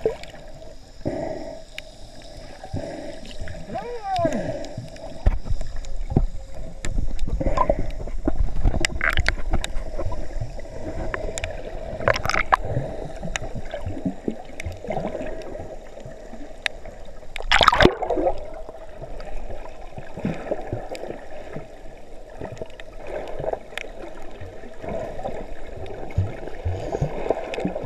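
Water rushes and bubbles close by, heard from underwater.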